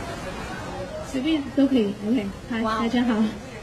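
A woman speaks calmly into a microphone, close by.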